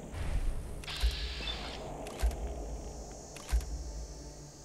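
Laser guns fire in sharp zapping bursts.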